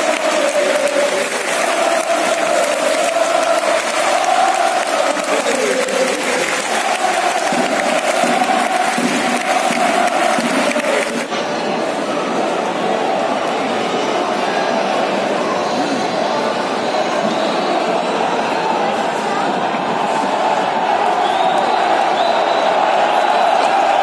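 A large football stadium crowd chants and sings in unison outdoors.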